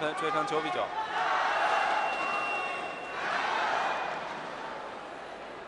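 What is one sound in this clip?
A large crowd cheers and applauds in a big hall.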